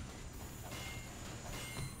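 A mechanical turret whirs and clanks as it assembles itself.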